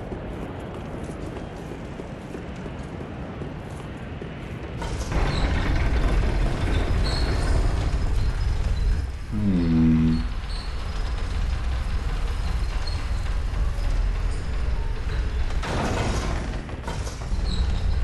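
Armoured footsteps clank on stone and wooden floors.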